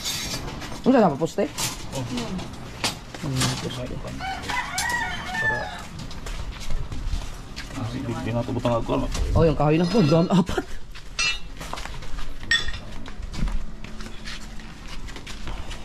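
Steel wire and rods clink and rattle.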